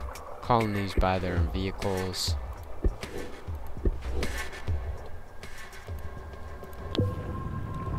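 Short electronic clicks sound as menus open and close.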